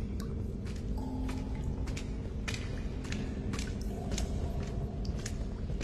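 Footsteps echo on a stone floor.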